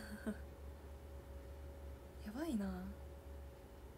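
A young woman speaks briefly and softly close to a microphone.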